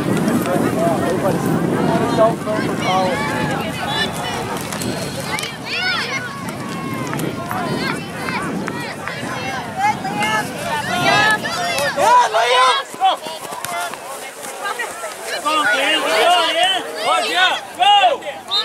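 A crowd of men and women talk and shout nearby outdoors.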